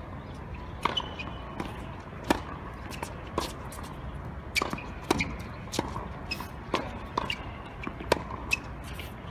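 A tennis ball is struck by rackets with sharp pops, back and forth.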